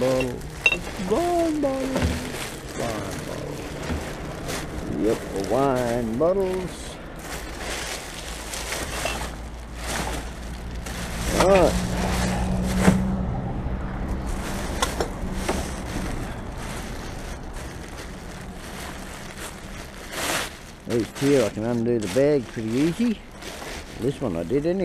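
Plastic bags rustle and crinkle as gloved hands handle them.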